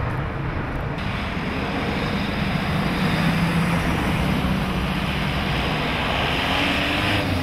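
A van engine rumbles steadily.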